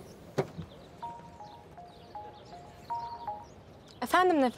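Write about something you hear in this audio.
Phone keypad buttons beep as a number is dialed.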